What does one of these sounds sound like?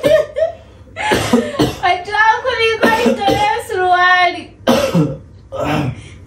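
A young woman laughs loudly.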